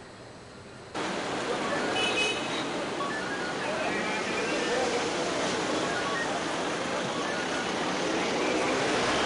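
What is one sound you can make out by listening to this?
Cars drive slowly past on a road.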